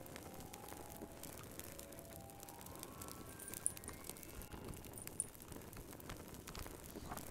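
A fire crackles and pops softly.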